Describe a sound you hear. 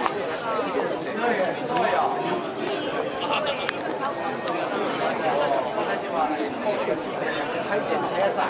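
A crowd of men and women chatter and talk over one another in a large echoing hall.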